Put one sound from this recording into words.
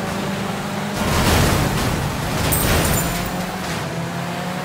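Cars crash into each other with loud bangs.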